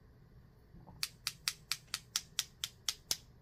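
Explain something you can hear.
A paintbrush taps rapidly and evenly against another brush.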